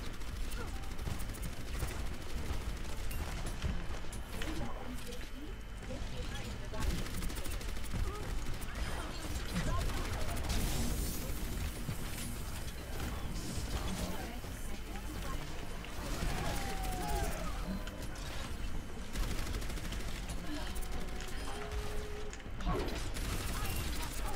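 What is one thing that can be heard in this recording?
Video game weapons fire in rapid bursts.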